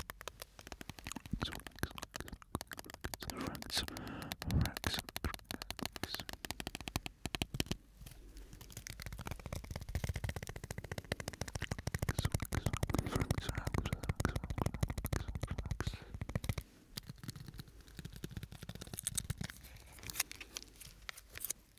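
Crinkly plastic crackles and taps close to a microphone.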